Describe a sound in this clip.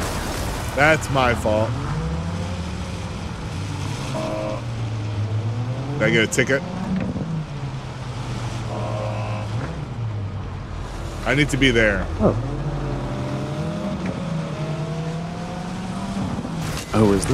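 A car engine hums steadily and rises and falls in pitch as it drives.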